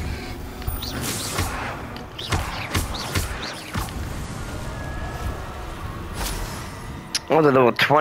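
Spells crackle and burst in quick blasts.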